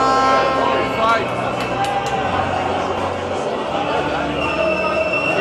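A man speaks over an echoing arena loudspeaker.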